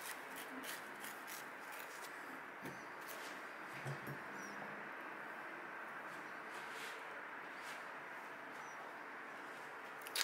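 A knife scrapes and cuts through an avocado.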